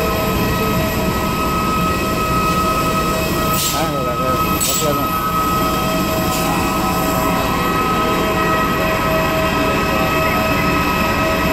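A jet engine whines and roars steadily nearby.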